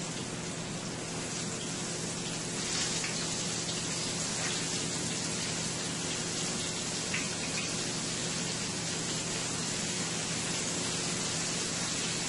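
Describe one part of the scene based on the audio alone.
Fish sizzles and crackles in hot oil.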